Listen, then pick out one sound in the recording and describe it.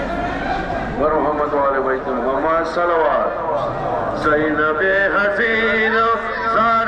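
A man's voice chants loudly through a loudspeaker.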